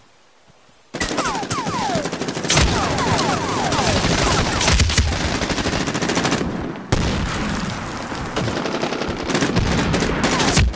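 Gunshots crack in quick bursts amid loud battle noise.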